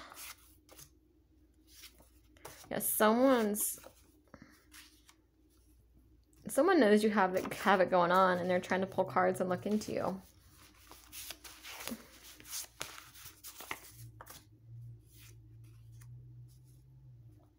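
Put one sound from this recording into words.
Paper cards rustle and slide as they are handled.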